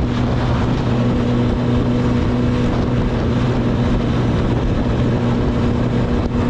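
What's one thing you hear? A motorcycle engine hums steadily close by as the bike cruises along.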